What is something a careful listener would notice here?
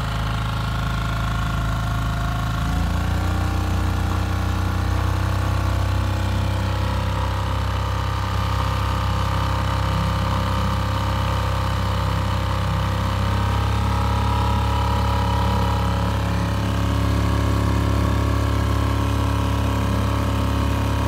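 A small outboard engine runs steadily close by, its pitch stepping up a little now and then.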